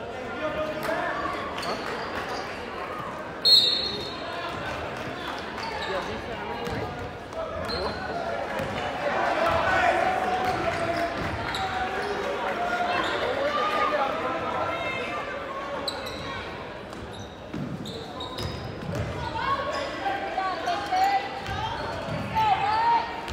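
A ball bounces on a hardwood floor.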